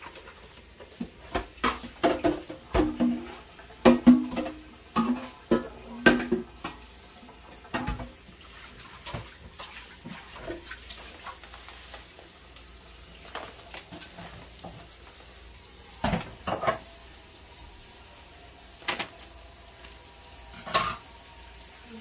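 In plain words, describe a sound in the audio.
A metal pot and utensils clatter and clink.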